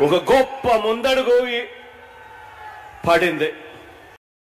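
A man speaks with animation into a microphone over a loudspeaker system.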